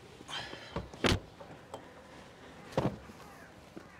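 A car boot lid thumps shut.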